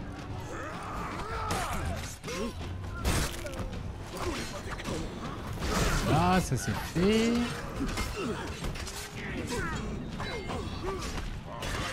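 Swords clang against shields and armour in a fierce melee.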